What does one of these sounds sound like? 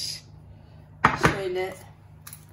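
A glass baking dish knocks down onto a hard countertop.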